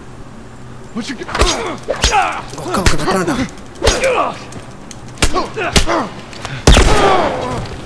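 Heavy punches thud in a scuffle.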